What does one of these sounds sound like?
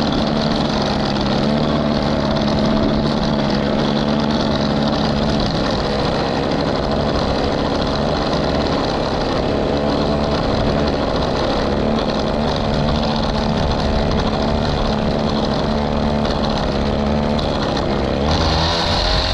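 A string trimmer engine whines steadily up close.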